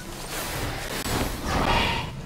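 Wind rushes loudly as a figure glides through the air.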